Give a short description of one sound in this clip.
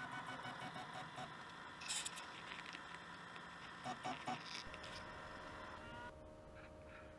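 A printer's motors whir with a steady hum.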